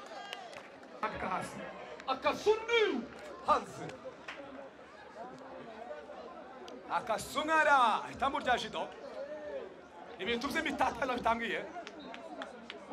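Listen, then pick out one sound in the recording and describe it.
Young men shout excitedly across an open field.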